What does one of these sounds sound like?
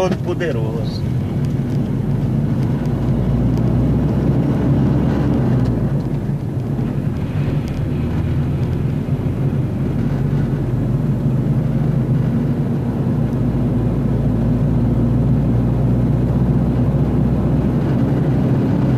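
A vehicle's engine hums steadily as it drives along a road.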